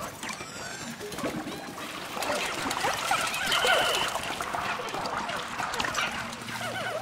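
Small cartoon creatures squeak and chatter in high little voices.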